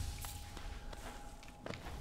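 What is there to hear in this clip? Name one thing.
A small character's jump makes a soft whoosh.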